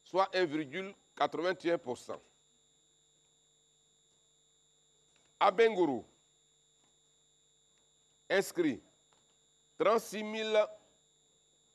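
A man speaks calmly into a close microphone in short bursts with pauses.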